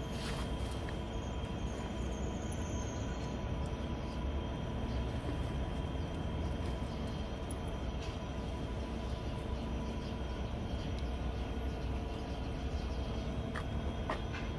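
A train rumbles faintly as it approaches along the tracks.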